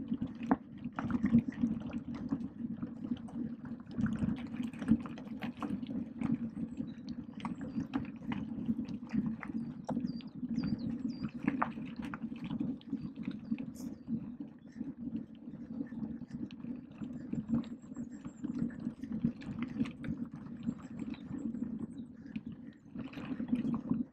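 A bicycle's motor hums steadily.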